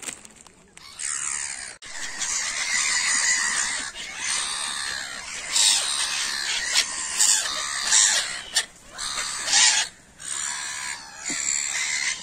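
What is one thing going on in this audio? Gulls squawk and cry loudly close by.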